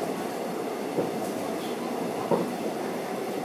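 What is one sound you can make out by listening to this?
Train wheels click now and then on the rail joints.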